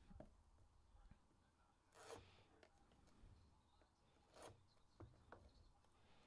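Cardboard taps and knocks as a box is handled.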